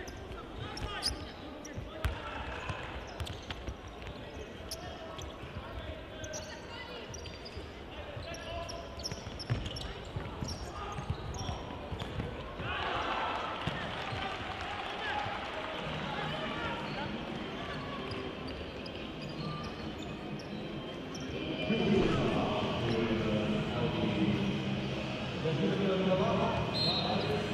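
A ball thumps as players kick it.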